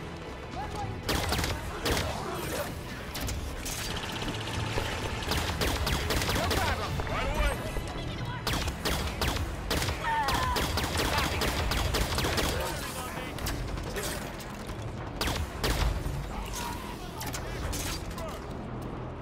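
A sci-fi energy gun fires in rapid bursts, with sharp zapping shots.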